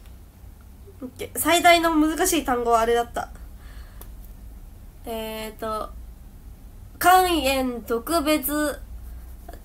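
A young woman speaks close to a microphone in a soft, light voice, in short bursts with pauses.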